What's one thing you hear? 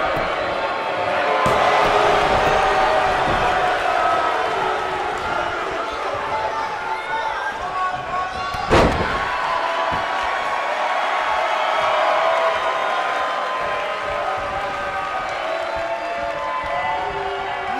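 A large crowd cheers and chants loudly in an arena.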